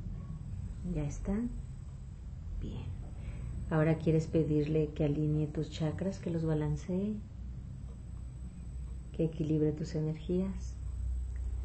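A woman speaks calmly nearby, in short bursts.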